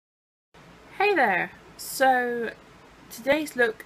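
A young woman speaks with animation, close to the microphone.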